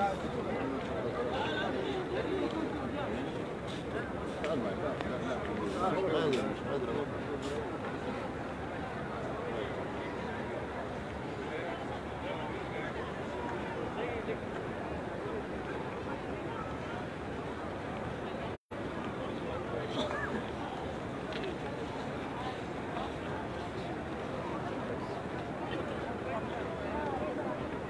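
A crowd of people murmurs and talks all around, outdoors.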